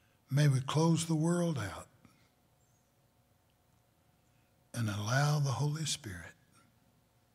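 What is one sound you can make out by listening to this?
An elderly man speaks slowly and solemnly into a microphone, in two short phrases.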